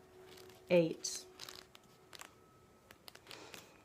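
Paper pages rustle as a booklet is opened and leafed through.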